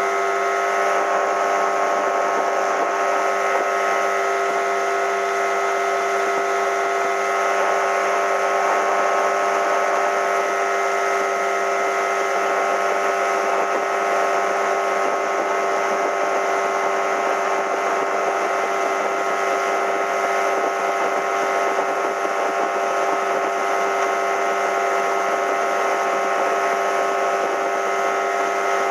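A boat engine drones steadily at high speed.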